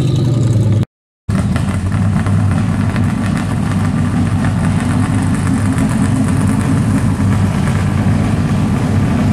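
A car engine rumbles loudly at a low idle close by.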